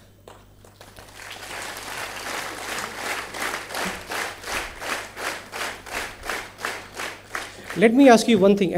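An audience claps steadily in rhythm.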